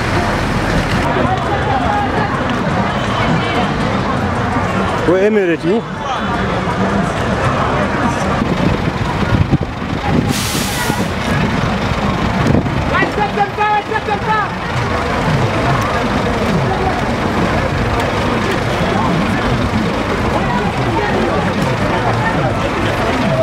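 Many boots tramp on a paved road as a large group marches.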